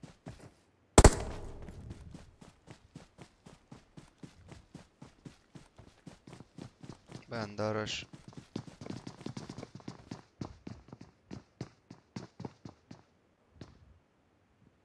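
Quick footsteps run over grass and hard ground.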